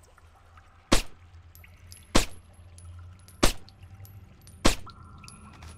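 A silenced pistol fires several sharp shots.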